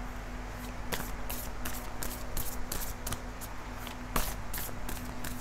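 Playing cards shuffle and riffle softly, close by.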